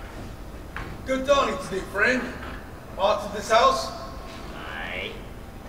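A man speaks loudly and dramatically in a large echoing hall.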